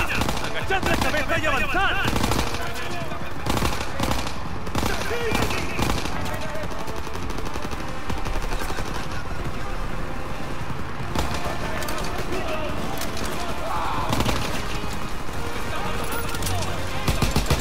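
A rifle fires shot after shot in quick bursts.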